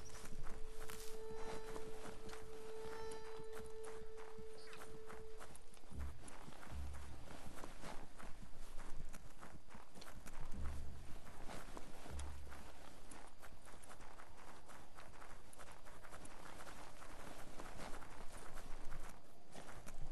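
Footsteps patter quickly on a paved road.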